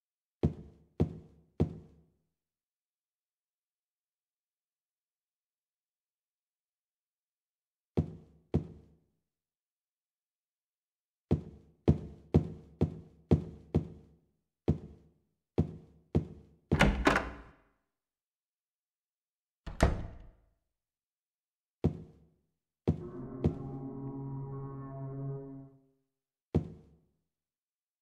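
Footsteps fall.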